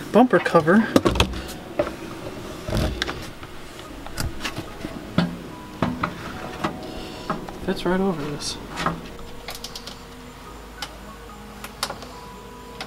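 Plastic clicks and knocks as a car bumper part is fitted by hand.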